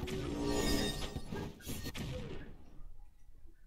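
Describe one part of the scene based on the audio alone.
Bright electronic game effects clatter rapidly during a fight.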